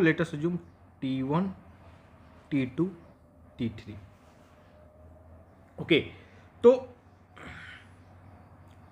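A young man speaks calmly in short phrases, close to a microphone.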